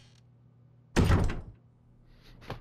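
A heavy metal door slams shut.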